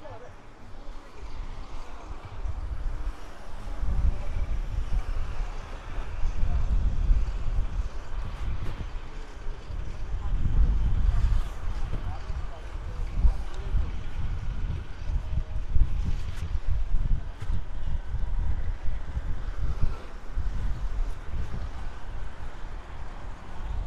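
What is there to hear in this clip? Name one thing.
Traffic hums along a busy street.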